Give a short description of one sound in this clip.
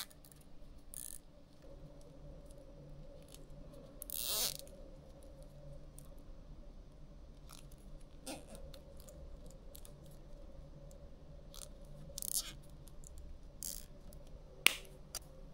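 Cables rustle and click as hands handle them.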